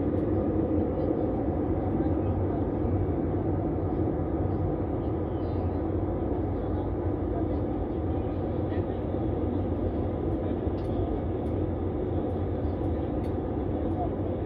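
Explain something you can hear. A jet engine roars steadily, heard from inside an aircraft cabin.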